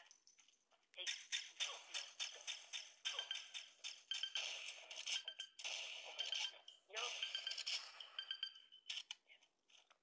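Rifle shots crack repeatedly in a video game.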